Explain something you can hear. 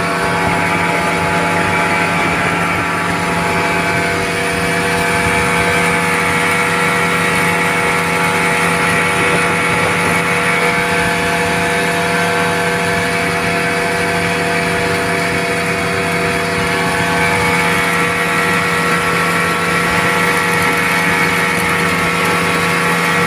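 A wooden boat's engine drones at speed.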